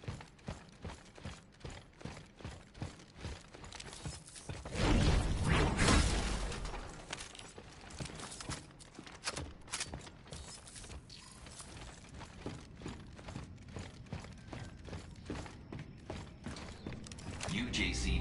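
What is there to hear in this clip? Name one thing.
Heavy boots thud in steady footsteps.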